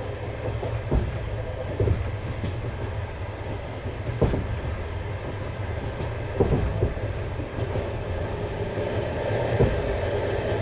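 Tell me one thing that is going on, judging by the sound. Train wheels knock over rail joints now and then.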